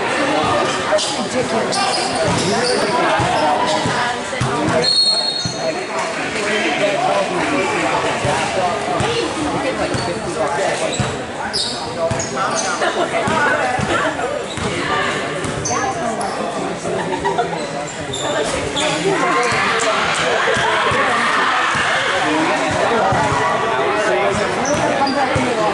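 A basketball bounces on a hard gym floor.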